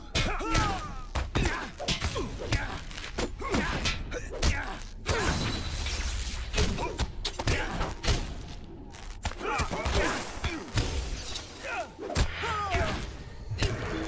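Magic blasts crackle and whoosh.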